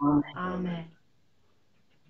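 A woman speaks briefly through an online call microphone.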